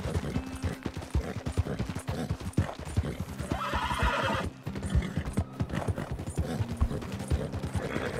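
A horse's hooves clop steadily.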